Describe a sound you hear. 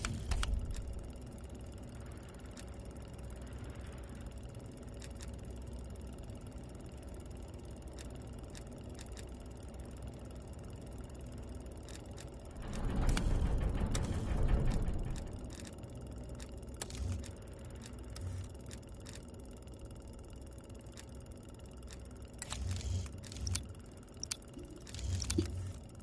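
Short interface clicks sound as menu options change.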